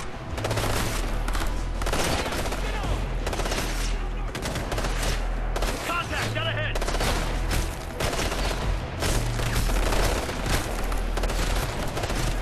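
Gunfire rattles.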